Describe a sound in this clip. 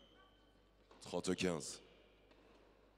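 A crowd applauds in a large echoing hall.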